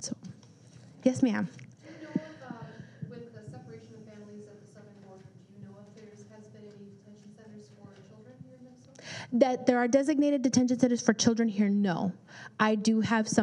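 A woman speaks calmly and clearly through a microphone.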